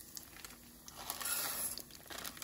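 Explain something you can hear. Rice pours into a pot with a rushing patter.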